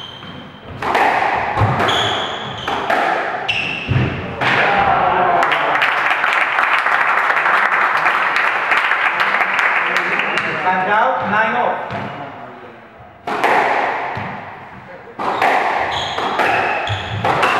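A squash ball smacks hard against the walls in an echoing court.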